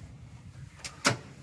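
A car door clunks.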